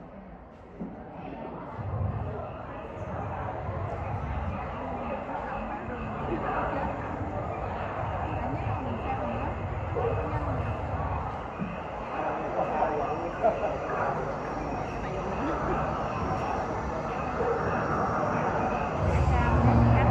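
Music plays loudly over loudspeakers in a large echoing hall.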